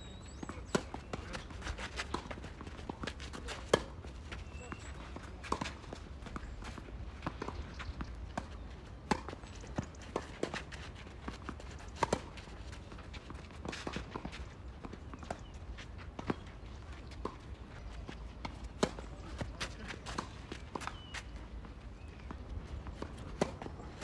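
Tennis balls are struck sharply with rackets outdoors.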